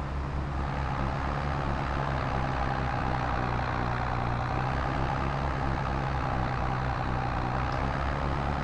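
A tractor engine chugs steadily at a low, even throb.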